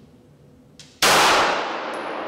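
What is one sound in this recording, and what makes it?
A pistol fires a shot that echoes in an indoor range.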